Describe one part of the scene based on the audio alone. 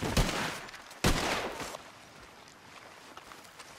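A large animal crashes through the undergrowth.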